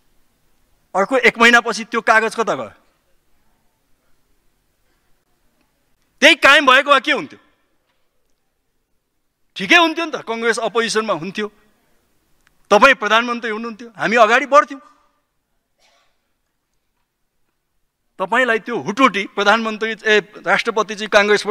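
A man speaks into a microphone in a formal, measured way, with long pauses between phrases.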